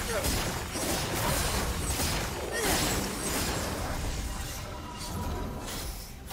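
Magical spell blasts and hits crackle and whoosh in quick bursts.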